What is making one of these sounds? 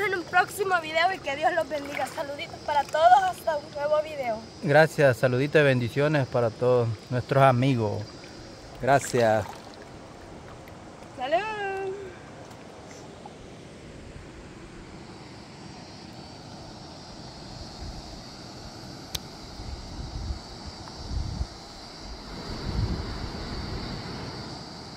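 River water flows and gurgles steadily.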